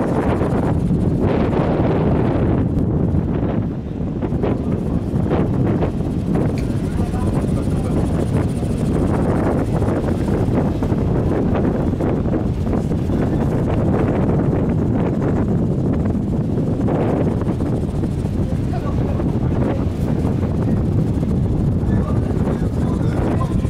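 Wind blusters loudly across the open water.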